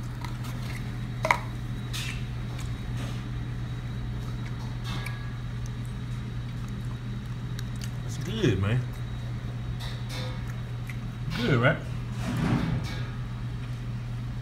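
A plastic fork scrapes and taps on a plate.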